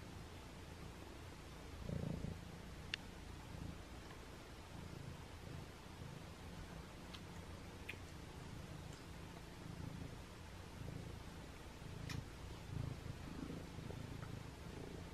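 A cat purrs close by with a low, steady rumble.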